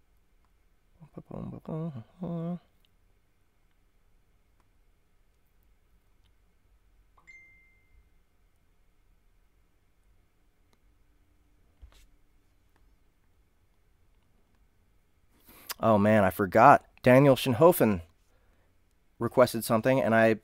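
A young man speaks calmly and close into a microphone, with pauses.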